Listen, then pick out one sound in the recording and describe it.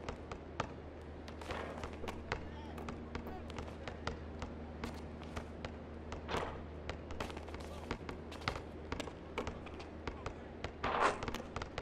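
A basketball bounces on a court.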